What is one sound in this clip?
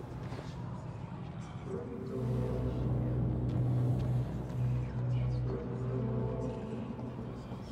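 Footsteps tread slowly on a stone floor.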